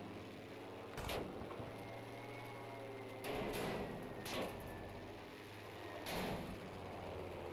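Anti-aircraft shells burst with dull booms nearby.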